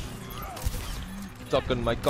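A game rifle fires a crackling energy shot.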